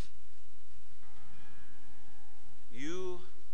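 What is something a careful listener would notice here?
An acoustic guitar plays a few plucked notes.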